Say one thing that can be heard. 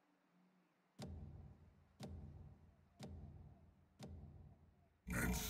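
A countdown timer ticks once a second.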